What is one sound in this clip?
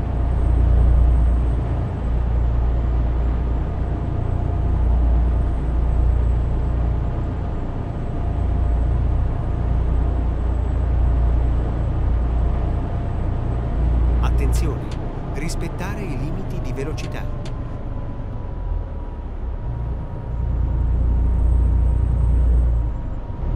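A truck engine drones steadily with a deep rumble.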